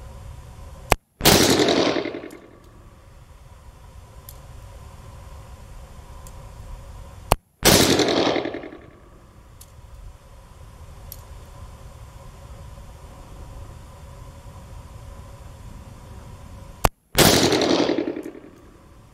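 A revolver fires loud shots that echo briefly.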